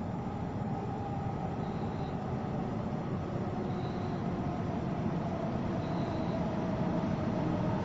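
An electric commuter train approaches in the distance with a low, growing rumble.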